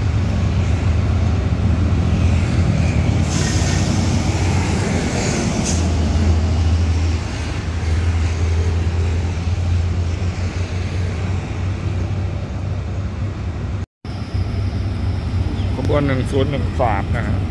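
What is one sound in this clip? A diesel locomotive engine rumbles and throbs steadily nearby.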